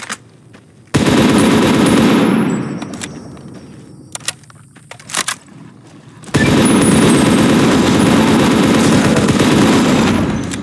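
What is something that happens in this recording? A rapid-fire gun roars in long, fast bursts.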